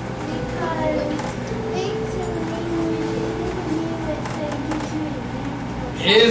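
A man speaks calmly to a room, heard at a distance.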